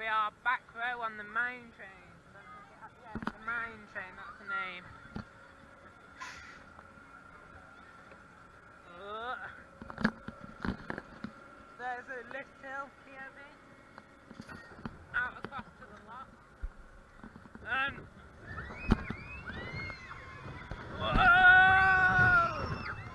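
Riders on a roller coaster scream and shout close by.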